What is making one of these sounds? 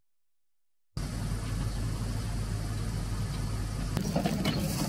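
An engine idles with a low steady hum.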